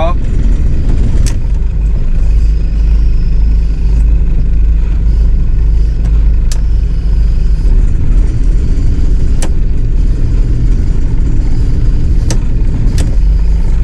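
Water rushes past the hull of a moving boat.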